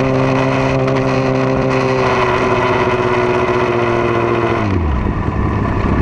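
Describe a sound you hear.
A motorcycle engine revs high and then drops in pitch as it slows.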